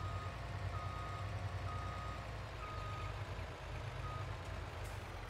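A truck's reversing alarm beeps in short, regular pulses.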